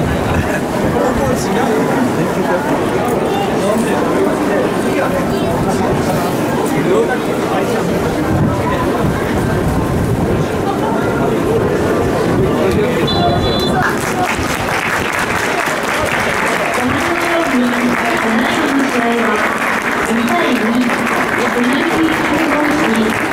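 A large crowd murmurs and chatters in an open stadium.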